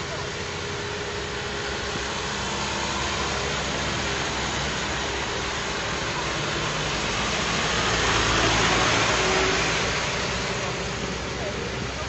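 A heavy truck's engine rumbles as it approaches.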